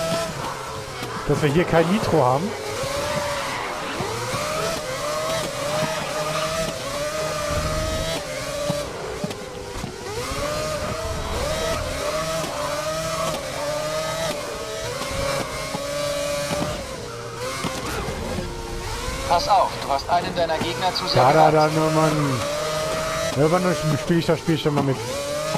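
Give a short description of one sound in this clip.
Other racing cars roar past close by.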